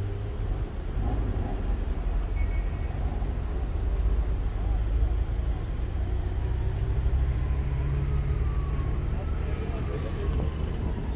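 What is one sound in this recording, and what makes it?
Traffic rumbles steadily nearby outdoors.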